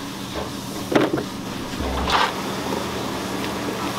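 Pieces of wet vegetables drop into a plastic tub.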